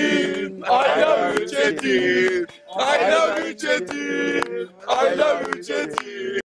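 A group of men sing loudly together.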